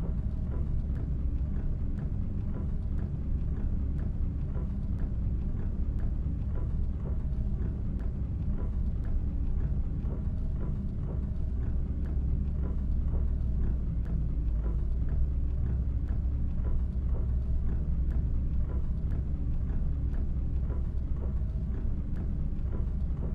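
Windscreen wipers sweep back and forth with a regular soft thump.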